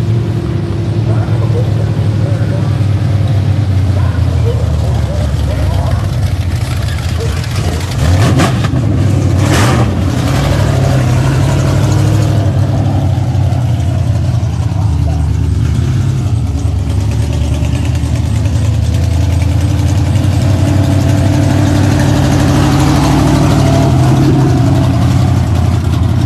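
A race car engine roars and revs loudly close by.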